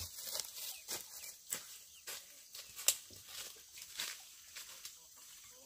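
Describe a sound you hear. Footsteps crunch through dry leaves and undergrowth on a slope.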